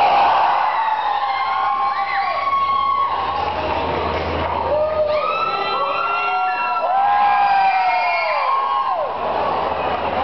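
A young man sings and shouts into a microphone.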